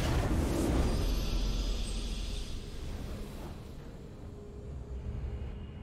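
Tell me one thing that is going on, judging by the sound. A triumphant fanfare sounds.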